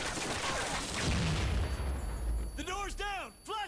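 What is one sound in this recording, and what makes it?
A blast booms and debris scatters.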